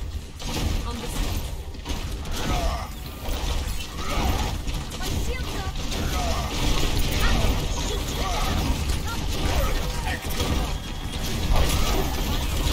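A futuristic energy weapon fires in rapid bursts.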